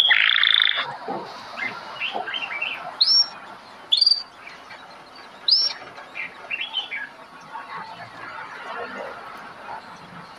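Birds call with short, rising whistles in the distance.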